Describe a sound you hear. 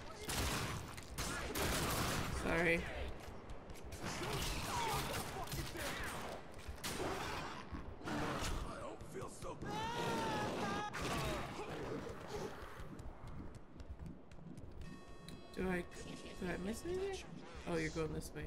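Pistol shots crack in quick bursts.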